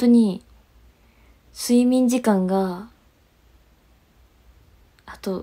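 A young woman speaks close to a microphone in short bursts.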